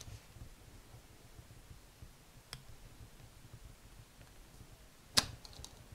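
Paper rustles softly as hands fold it.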